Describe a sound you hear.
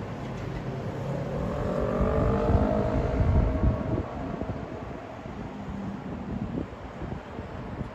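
City traffic rumbles steadily on the roads below.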